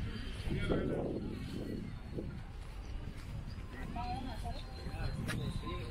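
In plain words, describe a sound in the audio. Adult men and women chat quietly at a distance outdoors.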